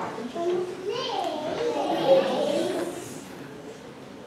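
Young children chatter and call out together in an echoing hall.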